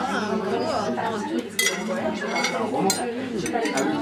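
Metal cutlery clinks against a ceramic plate.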